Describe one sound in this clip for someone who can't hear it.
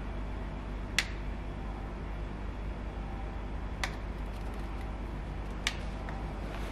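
A plastic switch clicks.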